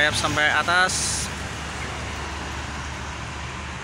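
A motorcycle drives along the road.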